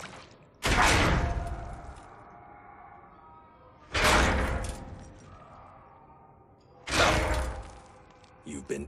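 Metal bars rattle and clang loudly as they are shaken and banged.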